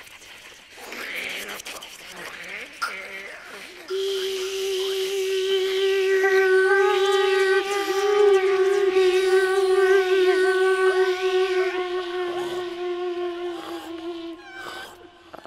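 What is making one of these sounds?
A woman sings a long, steady held note close to a microphone.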